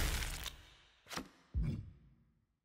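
Two short sharp swishes sound one after the other.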